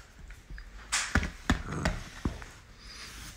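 A small dog tugs and shakes a rope toy, thumping on a sofa cushion.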